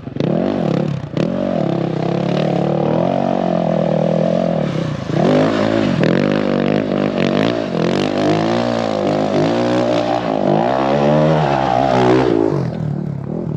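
A dirt bike engine revs and roars nearby, rising and falling in pitch.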